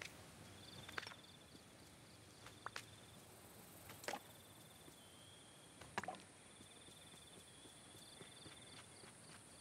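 Footsteps pad softly over grass.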